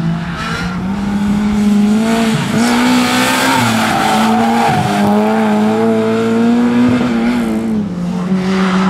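A small hatchback's engine revs hard as the hatchback accelerates through a corner.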